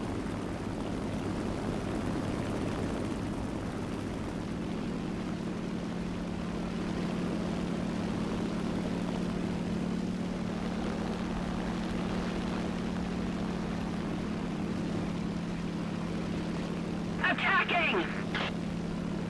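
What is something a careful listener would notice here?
A single-engine radial piston fighter drones in flight.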